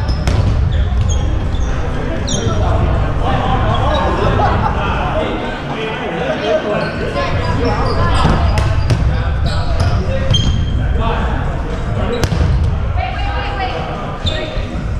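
Balls thud and bounce on a wooden floor in a large echoing hall.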